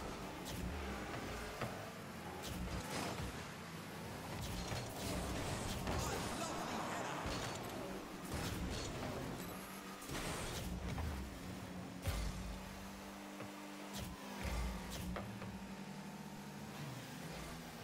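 A video game car engine hums as it drives.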